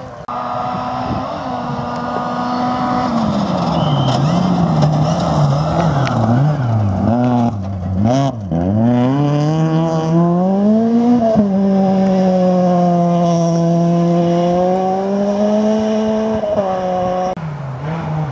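A rally car engine roars and revs hard, rising and falling in pitch as it shifts gears.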